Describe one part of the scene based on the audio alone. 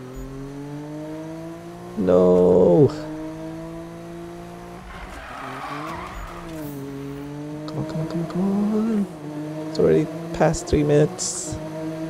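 A car engine roars steadily and revs.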